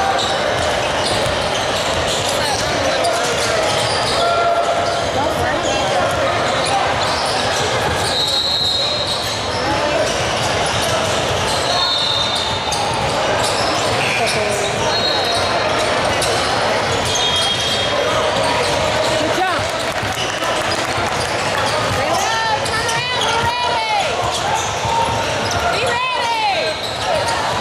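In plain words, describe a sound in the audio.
A crowd chatters and cheers throughout a large echoing gym.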